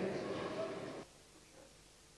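A large crowd in an echoing hall murmurs and then falls silent.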